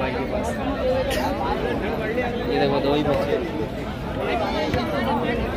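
Many people talk at once in a busy outdoor crowd nearby.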